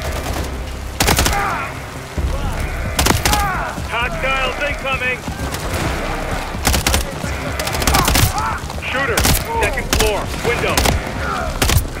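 A rifle fires in short bursts of sharp, loud shots.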